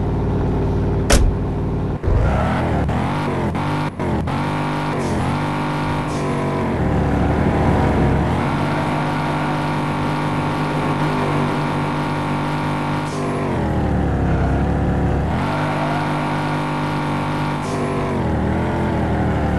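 A car engine hums and revs as the car drives along.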